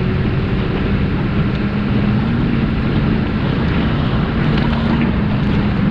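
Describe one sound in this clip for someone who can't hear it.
An engine hums steadily as a vehicle drives over sand.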